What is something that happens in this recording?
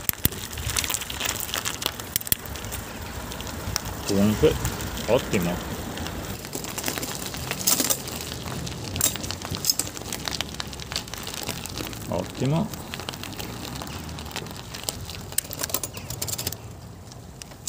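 Bicycle tyres crunch over gravel.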